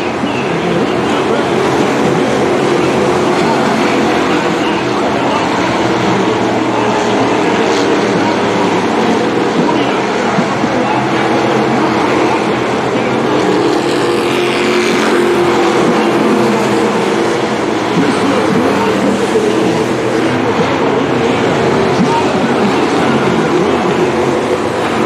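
Race car engines roar loudly.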